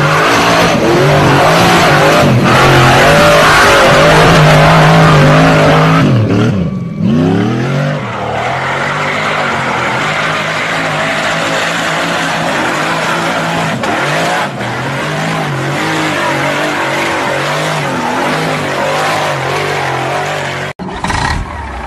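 An off-road vehicle's engine roars and revs loudly as it climbs.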